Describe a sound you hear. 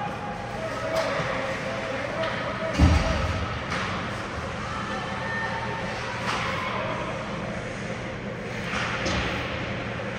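Hockey sticks clack sharply against a puck in a large echoing hall.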